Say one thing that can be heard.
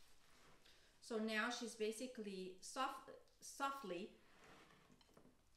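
A woman speaks calmly up close.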